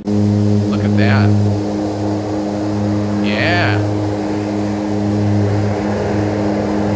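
Twin propeller engines drone steadily.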